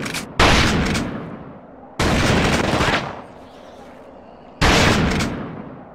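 A shotgun fires loudly, each blast echoing and fading.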